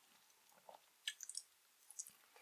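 A woman bites into a firm gummy candy with a crisp, sticky crunch close to a microphone.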